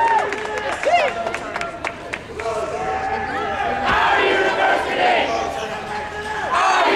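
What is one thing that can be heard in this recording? A crowd of people shouts and talks loudly nearby outdoors.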